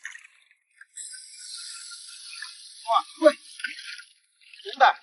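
Water splashes and drips in a shallow pool.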